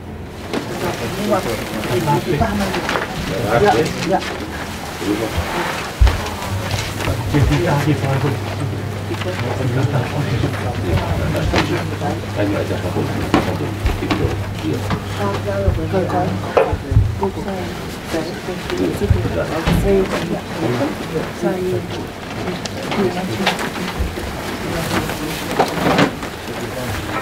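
A mixed group of adults talk quietly nearby.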